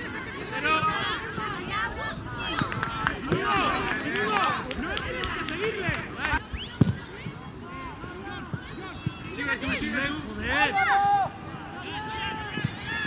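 Children shout to one another on an outdoor football pitch.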